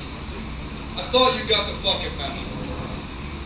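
A man talks through a microphone over a loudspeaker.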